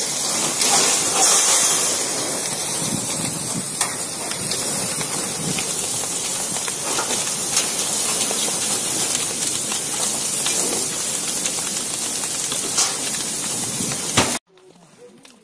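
A fire hose sprays water with a loud steady hiss.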